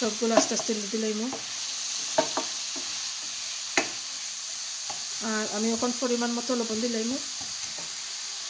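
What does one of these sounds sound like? A wooden spoon stirs and scrapes food in a metal pan.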